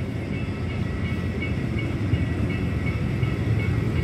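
A motorcycle engine idles and pulls away nearby.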